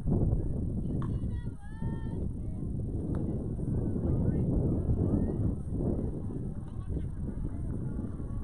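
Young players call out across an open field in the distance.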